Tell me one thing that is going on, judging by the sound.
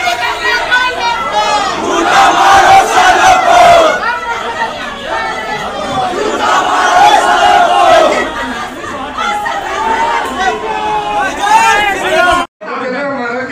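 A crowd of men shout and argue loudly at close range.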